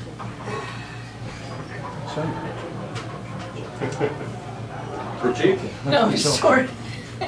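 A young man speaks into a microphone, heard through a loudspeaker.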